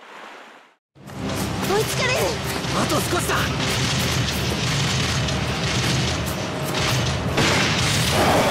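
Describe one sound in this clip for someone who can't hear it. Metal clangs and bangs in a fight.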